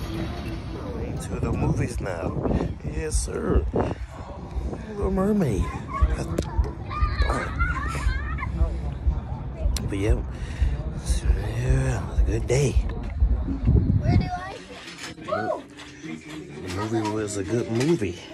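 A young man talks casually, close up.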